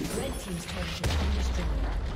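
A tower explodes with a deep boom.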